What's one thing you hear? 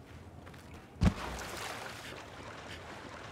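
Water splashes loudly as someone wades through it.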